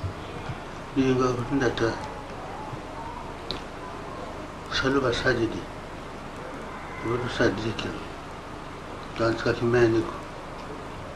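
An elderly man speaks calmly, in short phrases with pauses.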